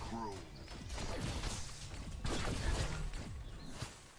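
Magic blasts crackle and boom in a game fight.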